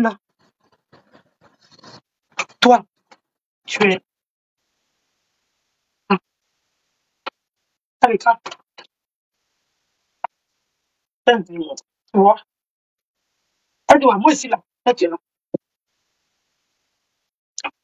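A young woman talks with animation close up, in short bursts with pauses.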